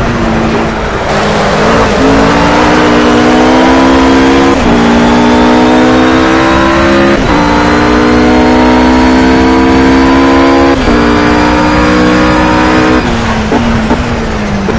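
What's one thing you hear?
A GT3 race car engine roars at full throttle, its revs climbing and dropping with each upshift.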